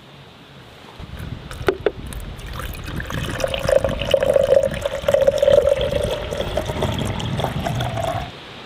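Water pours and splashes into a glass container.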